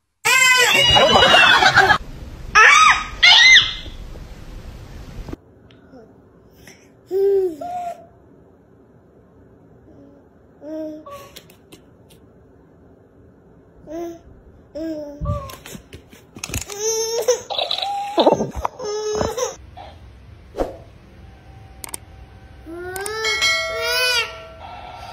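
A toy sings in a high, chirpy voice.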